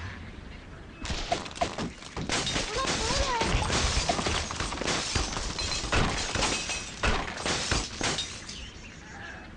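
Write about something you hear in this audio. Wooden and stone blocks crash and topple down.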